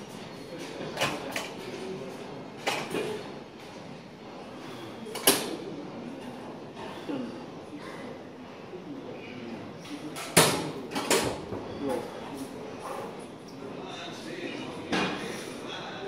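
Metal dumbbells clank against each other and the floor.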